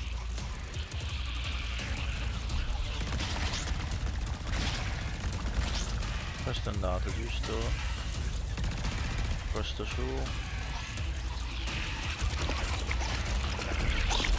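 Laser blasts fire in a video game.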